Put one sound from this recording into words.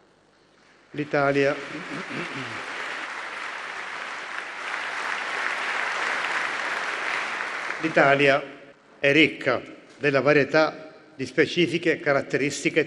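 An elderly man speaks calmly into a microphone in a large echoing hall.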